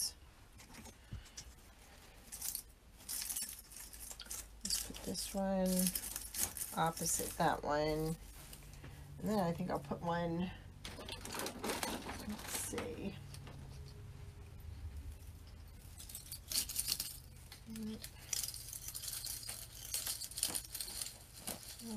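Pine branches rustle and crackle as they are handled.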